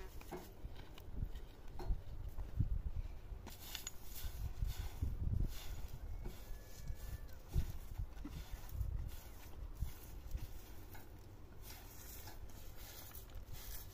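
A straw broom sweeps across dry dirt.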